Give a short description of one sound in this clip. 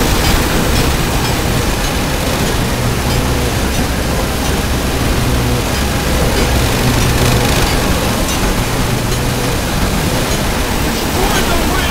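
Game explosions boom and crackle over and over.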